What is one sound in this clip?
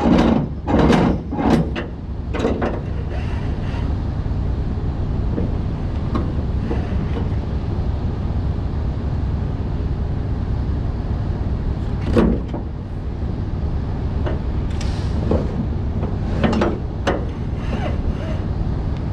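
A ratchet strap clicks as it is cranked tight.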